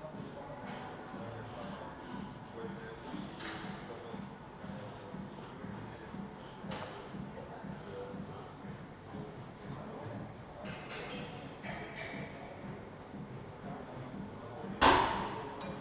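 Cable weights clank as a man does a gym exercise.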